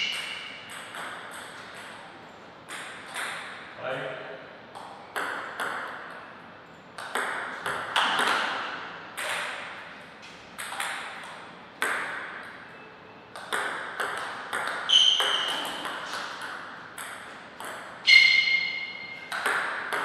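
A ping-pong ball clicks sharply off paddles and the table, with echoes.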